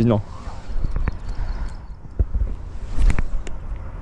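A fishing reel clicks as a line is cast.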